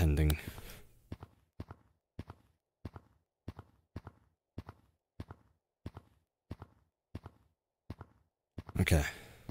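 Footsteps tap quickly and evenly on a hard surface.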